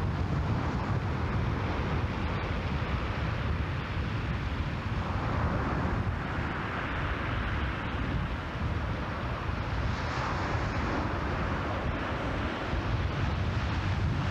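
Strong wind rumbles across the open water.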